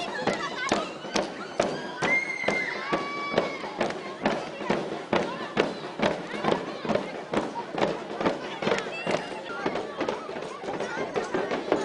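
A group of girls sing and chant loudly together.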